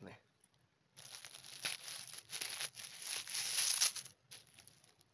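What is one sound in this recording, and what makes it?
A knife slices through a mushroom stem.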